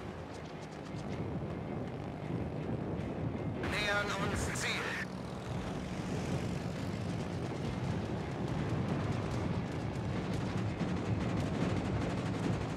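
Anti-aircraft shells burst in rapid, rumbling explosions.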